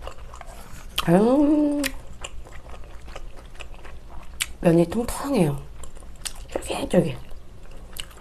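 A young woman hums with pleasure close to a microphone.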